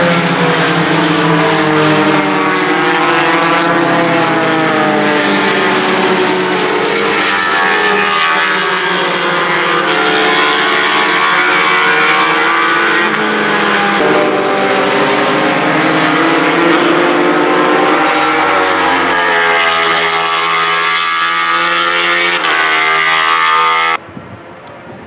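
Racing car engines roar and whine as cars speed past, shifting gears.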